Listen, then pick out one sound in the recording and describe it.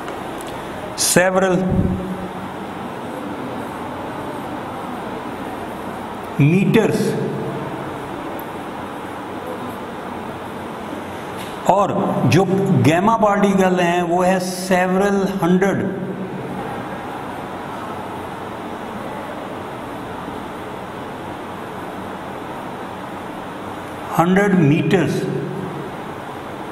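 A man speaks calmly in short bursts nearby, with pauses.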